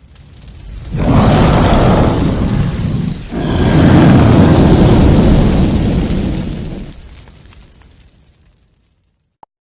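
Flames roar loudly, then fade away.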